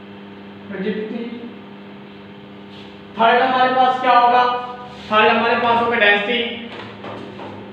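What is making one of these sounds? A man speaks clearly and loudly, close by.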